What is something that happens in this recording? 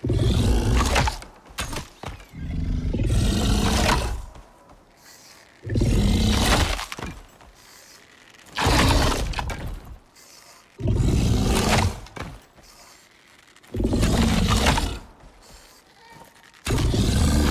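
A tool strikes rock again and again with loud, crunching blows.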